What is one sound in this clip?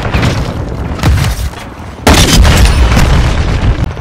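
Loud gunshots boom in quick bursts.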